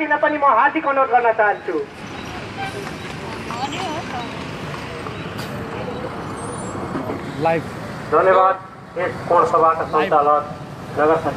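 A man speaks loudly through a microphone outdoors.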